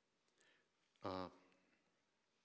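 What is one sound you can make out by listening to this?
A man speaks a brief word into a microphone in a quiet room.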